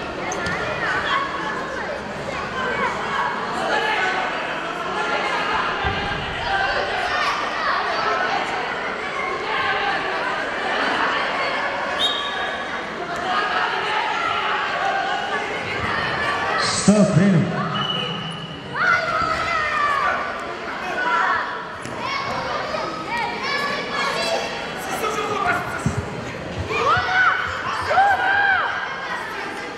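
A crowd of spectators chatters throughout in a large echoing hall.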